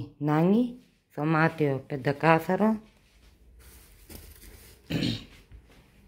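A woman talks close by with animation.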